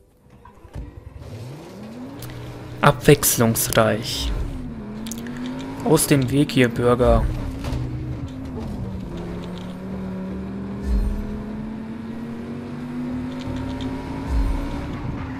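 A car engine revs and roars as the car speeds up.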